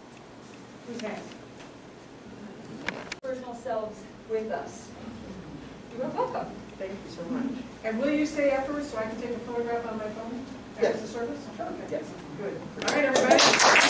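Women talk nearby.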